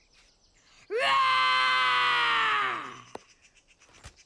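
A cartoon dragon shouts with excitement.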